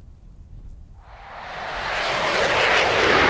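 An F-4E twin-turbojet fighter roars louder as it approaches overhead.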